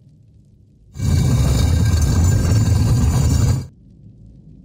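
A heavy stone door grinds open.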